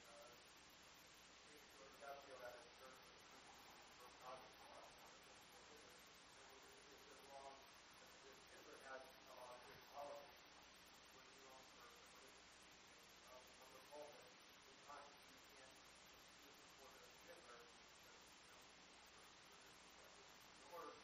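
A middle-aged man speaks calmly through a lapel microphone, with pauses.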